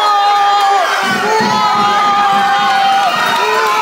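A crowd sings and cheers in the background.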